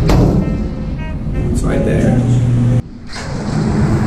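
A metal door latch clunks and a heavy door swings open.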